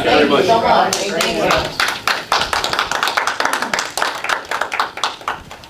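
A group of people applauds.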